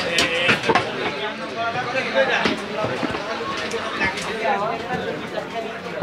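A cleaver chops through meat and bone onto a wooden block with sharp thuds.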